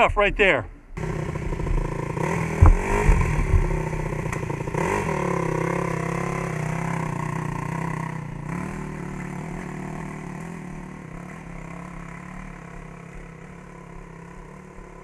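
A dirt bike engine idles and revs nearby, then slowly fades.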